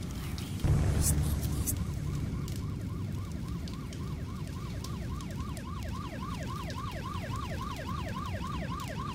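A siren wails in fast, repeating whoops.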